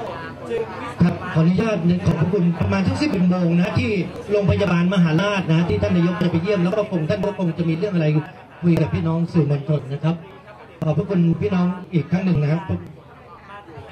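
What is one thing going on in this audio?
A man speaks loudly and firmly through a microphone, heard over a loudspeaker.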